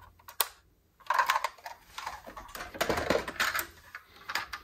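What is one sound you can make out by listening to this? Toy cars clatter against each other in a cardboard box.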